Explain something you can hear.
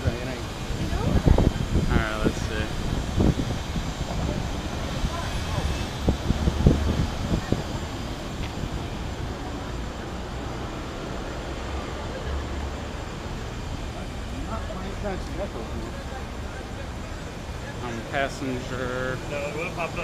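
A young man talks close by, casually and with some laughter.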